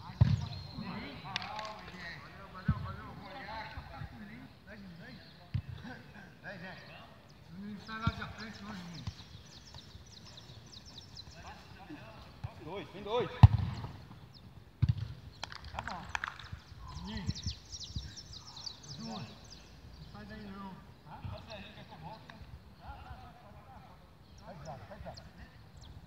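Men shout and call out to each other outdoors at a distance.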